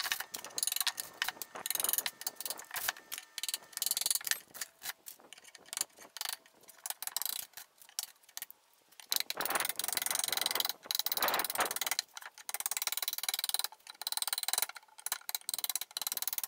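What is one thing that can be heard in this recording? A metal scraper rasps across wood in quick, short strokes.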